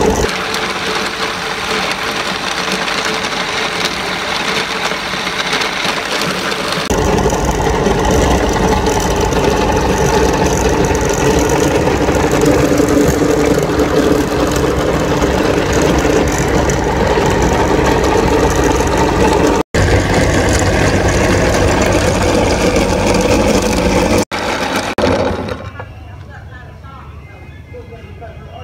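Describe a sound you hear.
A meat grinder's motor hums and whirs steadily.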